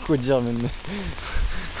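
A young man speaks close up, with a sing-song voice.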